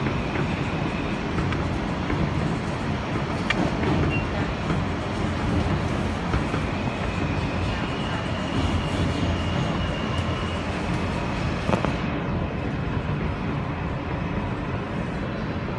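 A subway train rumbles loudly along the tracks through a tunnel.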